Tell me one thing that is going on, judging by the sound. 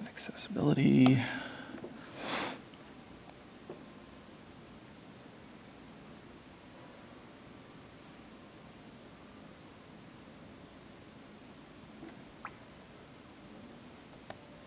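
A man types on a laptop keyboard.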